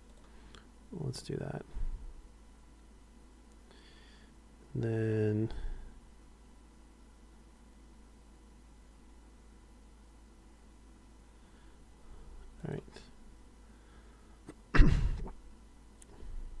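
A playing card swishes and snaps into place.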